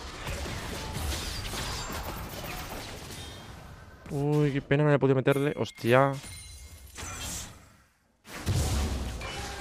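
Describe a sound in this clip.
Fantasy battle sound effects of spells and hits clash rapidly.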